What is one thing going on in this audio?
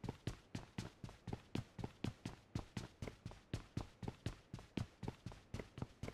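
Footsteps run up concrete stairs.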